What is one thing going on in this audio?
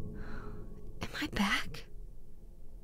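A young woman speaks quietly and wearily, close by.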